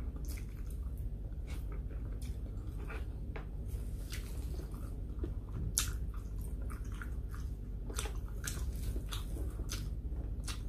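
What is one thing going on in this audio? Fingers pick at and tear food on a plate.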